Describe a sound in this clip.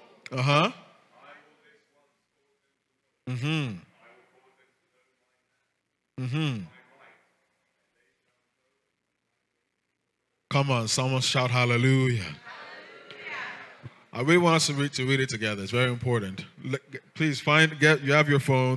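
A man speaks into a microphone in a reverberant hall, pausing between short phrases and then talking with animation.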